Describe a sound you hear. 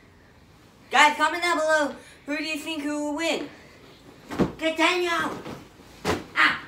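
A boy shouts excitedly nearby.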